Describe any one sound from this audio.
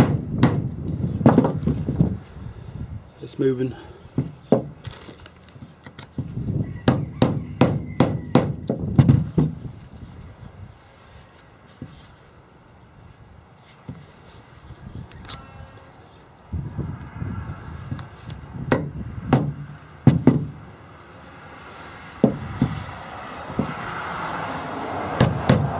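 A hammer strikes metal with sharp clanks.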